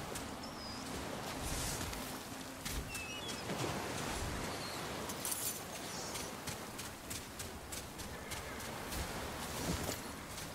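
Sword blows clash and strike in quick succession.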